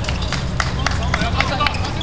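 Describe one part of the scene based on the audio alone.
A ball bounces on the court.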